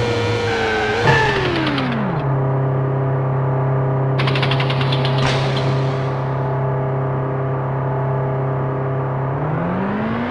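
A racing car's engine winds down and idles during a pit stop.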